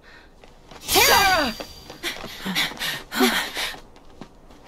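A young man shouts out loudly.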